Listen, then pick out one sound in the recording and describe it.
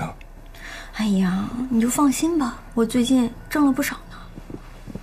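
A young woman speaks in a relaxed tone close by.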